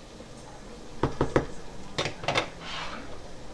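A metal ladle taps against a funnel on a glass jar.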